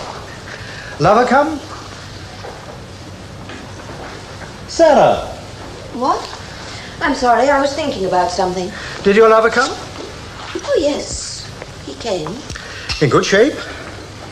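A man speaks calmly through an old television soundtrack.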